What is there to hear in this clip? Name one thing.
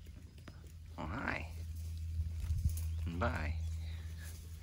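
A goat bleats loudly nearby.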